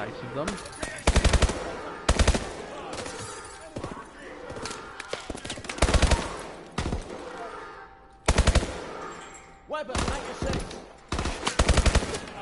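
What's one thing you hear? A rifle fires in short rapid bursts.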